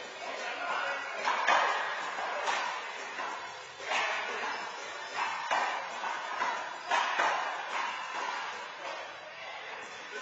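A handball smacks against the walls of an echoing indoor court.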